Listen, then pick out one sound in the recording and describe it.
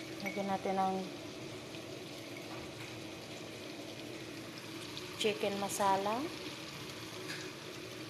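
A wooden spoon stirs chicken pieces in a pot.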